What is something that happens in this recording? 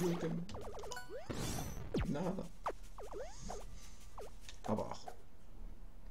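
Short, bouncy electronic blips sound as a game character jumps.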